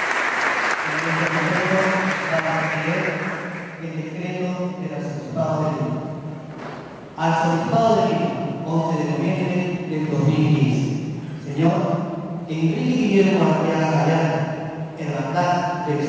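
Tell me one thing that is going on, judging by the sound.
A middle-aged man speaks calmly through a microphone, heard over loudspeakers in an echoing hall.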